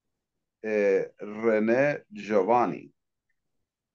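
A man speaks briefly and calmly over an online call.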